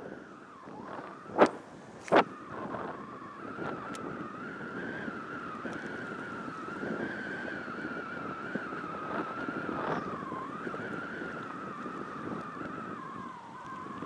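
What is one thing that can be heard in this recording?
Water laps gently against a grassy bank.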